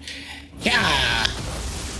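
A blade slashes and strikes in a fight.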